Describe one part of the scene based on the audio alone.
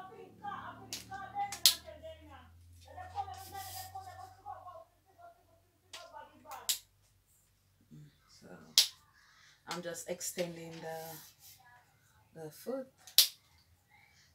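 Metal tripod legs click and clatter as they are unfolded.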